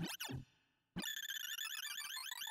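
Electronic tones chirp quickly in a busy, high cascade.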